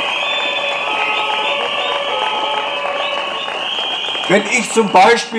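An elderly man speaks through a loudspeaker.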